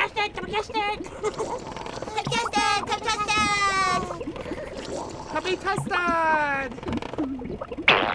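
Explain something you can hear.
Small characters chatter in high, squeaky, childlike voices.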